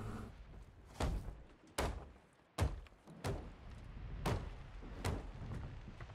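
Hammer blows knock on wood in quick succession.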